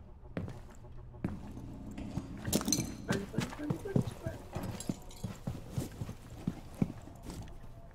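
Footsteps thud on a carpeted floor.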